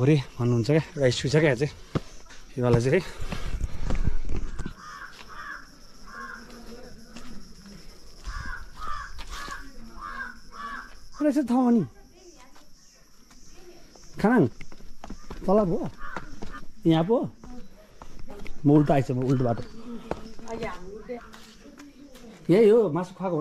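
A man talks calmly and close by, outdoors.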